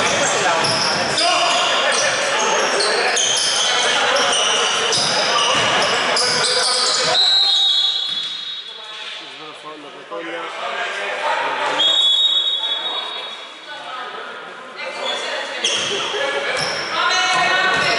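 Basketball shoes squeak on a hardwood court in an echoing indoor hall.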